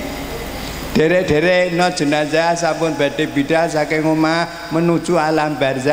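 An elderly man chants in a drawn-out, singing voice through a microphone.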